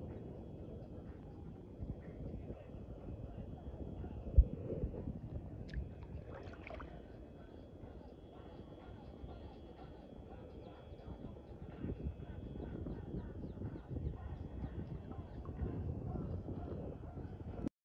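Shallow sea water laps and sloshes close by at the surface.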